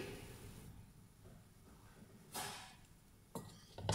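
Oil trickles into a metal bowl.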